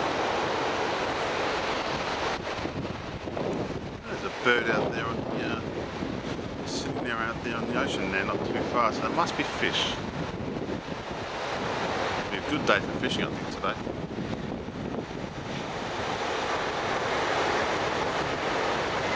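Waves wash steadily onto a beach.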